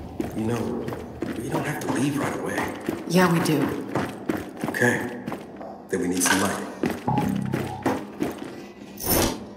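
Heavy footsteps thud on a wooden floor.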